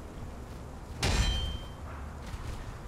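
A sword strikes metal armour with a sharp ringing clang.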